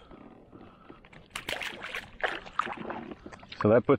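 A fish splashes into water.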